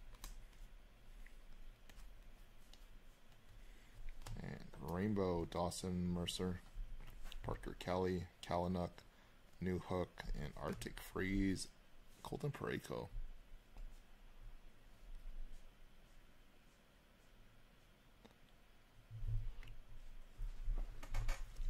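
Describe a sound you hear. Glossy cards slide and rustle against each other in someone's hands.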